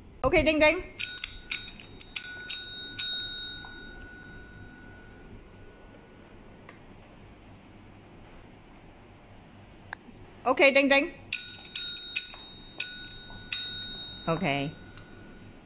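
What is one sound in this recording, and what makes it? A desk bell dings repeatedly and rings on.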